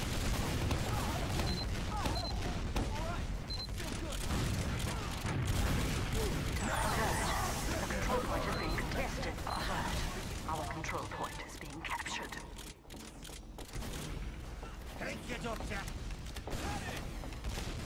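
A video game's weapon hums steadily.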